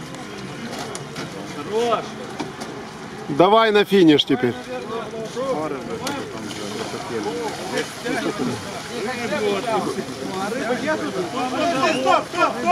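Several men talk and shout nearby outdoors.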